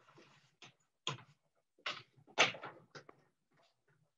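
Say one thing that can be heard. A loom's beater thuds against woven cloth.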